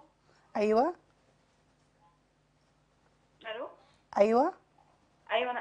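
A woman speaks in short, lively phrases close to a microphone.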